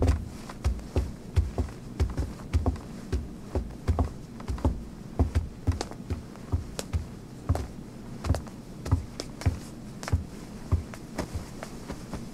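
Footsteps thud steadily on stairs.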